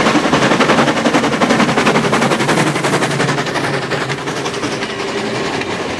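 Railway carriages clatter and rumble over the rails.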